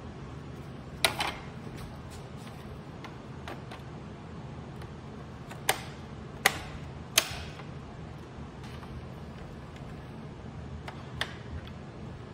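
Plastic and metal computer parts clatter and click as they are handled.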